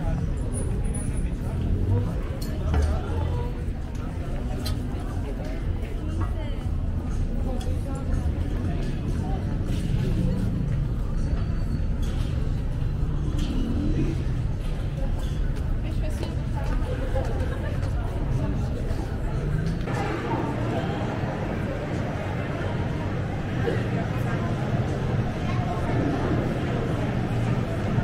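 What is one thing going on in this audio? Footsteps of a person walking tap on stone paving.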